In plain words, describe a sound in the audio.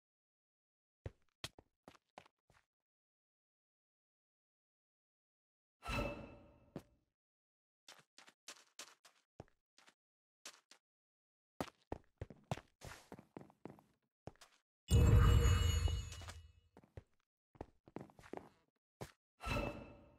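Footsteps patter quickly on stone.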